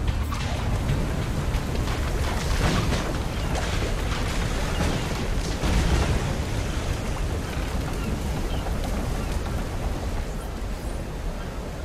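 Fires roar and crackle on burning ships.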